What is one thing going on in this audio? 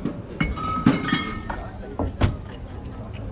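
Glass bottles clink together.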